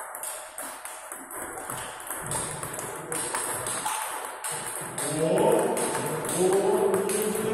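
A ping-pong ball clicks back and forth between paddles and a table.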